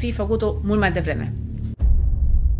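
A woman speaks calmly and close into a microphone.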